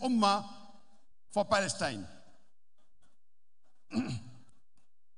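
An elderly man speaks forcefully into a microphone, in short bursts with pauses.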